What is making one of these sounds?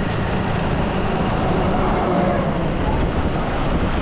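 A truck passes by in the opposite direction.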